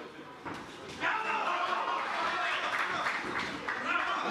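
A crowd cheers and shouts in a large hall.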